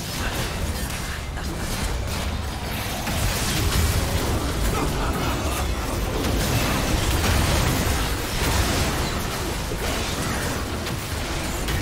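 Magic blasts and impacts crackle and boom in a busy video game battle.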